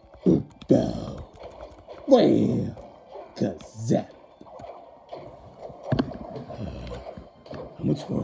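Electronic game sound effects whoosh and thump in short bursts.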